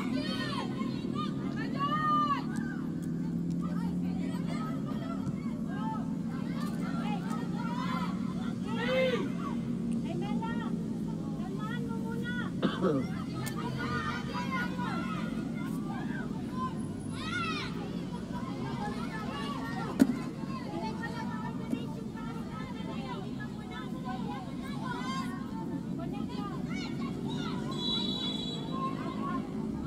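Young women shout to each other across an open outdoor field.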